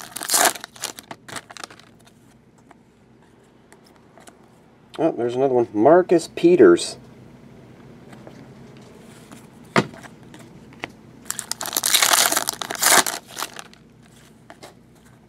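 Trading cards slide and flick against each other.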